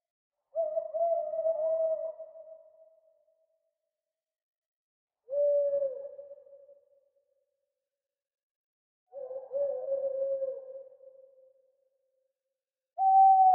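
An owl hoots in long, low calls that fade out, with quiet pauses between them.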